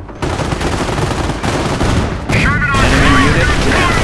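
An explosion bursts nearby.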